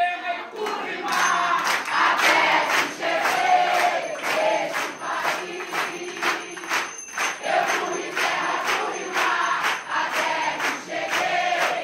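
A group of men and women sings together.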